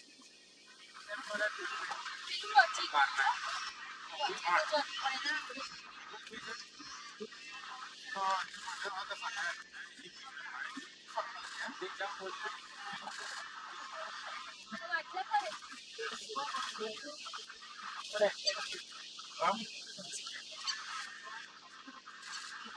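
A herd of wildebeest grunts and calls.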